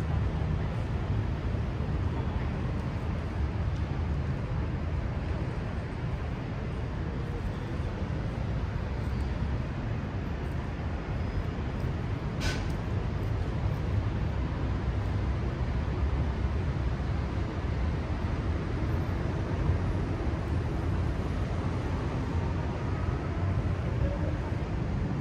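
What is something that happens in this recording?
Distant city traffic hums steadily far below.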